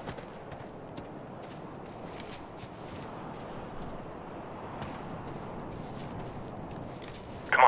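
Footsteps crunch slowly through snow.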